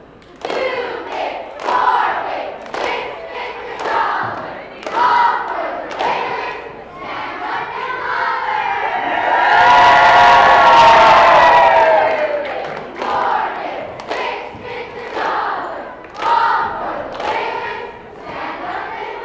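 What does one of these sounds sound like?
A group of young girls chant loudly in unison in a large echoing hall.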